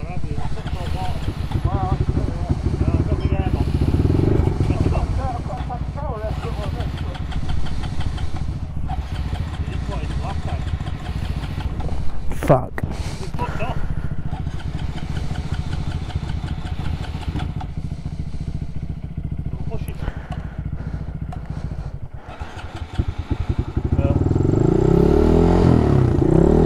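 A motorcycle engine idles with a low rumble, revving up near the end.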